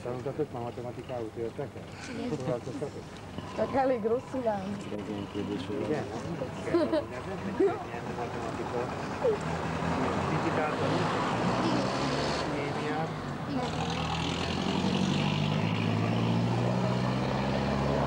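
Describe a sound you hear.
Children talk and chatter excitedly close by.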